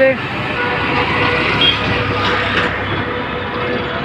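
A motorcycle engine passes close by.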